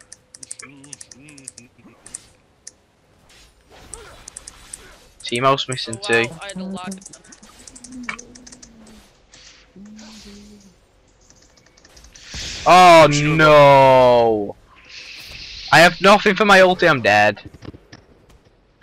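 Magic blasts and clashing hits of a fantasy battle crackle in quick bursts.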